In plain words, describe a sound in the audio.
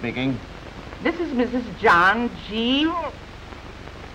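A middle-aged woman speaks with animation into a telephone.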